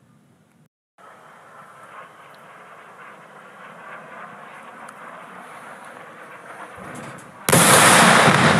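A distant fire roars steadily.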